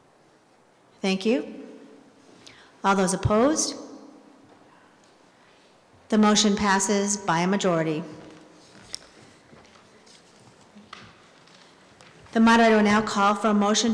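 A woman speaks into a microphone through a loudspeaker in a large echoing hall.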